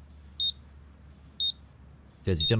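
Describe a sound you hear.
An electronic tester beeps in short, high tones.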